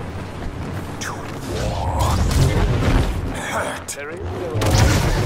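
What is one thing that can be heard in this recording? Blaster shots zap and crackle.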